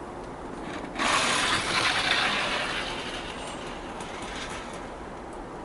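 A model train rattles softly along the track.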